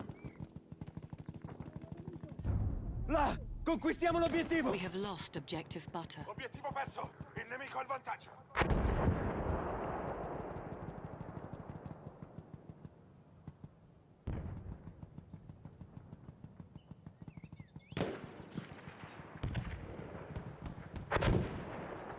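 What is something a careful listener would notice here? Gunfire crackles in quick bursts.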